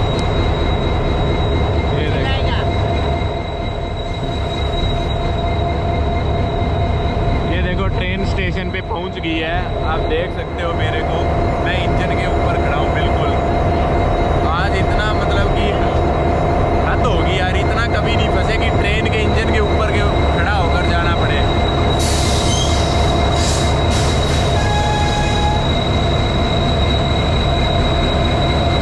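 A train engine rumbles steadily and grows closer.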